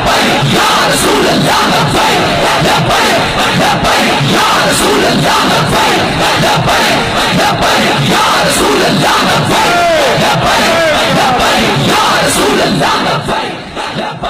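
A crowd chants loudly in unison.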